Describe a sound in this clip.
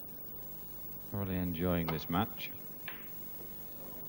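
A cue strikes a ball with a sharp click.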